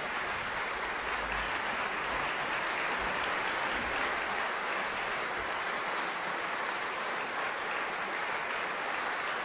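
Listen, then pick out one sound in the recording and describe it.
A large audience applauds in a large hall.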